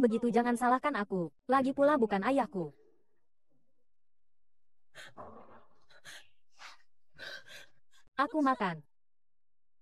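A young woman speaks in a shaky, upset voice close by.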